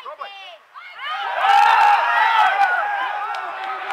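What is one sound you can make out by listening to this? Spectators cheer and shout close by.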